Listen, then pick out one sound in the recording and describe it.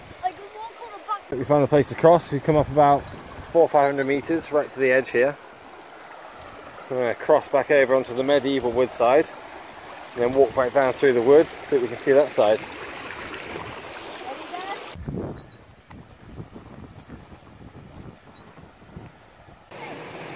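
A shallow stream rushes and babbles over rocks close by.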